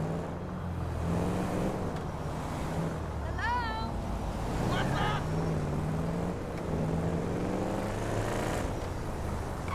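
A car engine hums steadily, rising and falling in pitch as the car drives.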